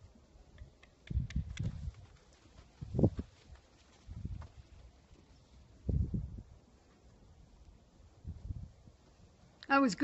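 Horse hooves thud on dirt ground.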